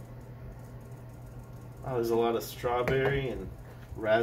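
A wine glass is set down on a hard surface with a light knock.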